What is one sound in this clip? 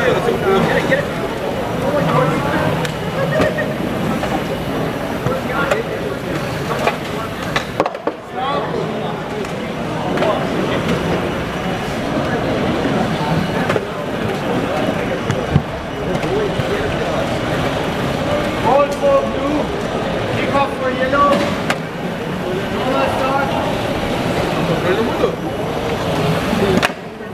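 Voices of a crowd murmur and echo through a large hall.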